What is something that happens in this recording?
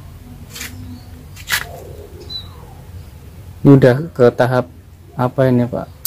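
Pruning shears snip twigs.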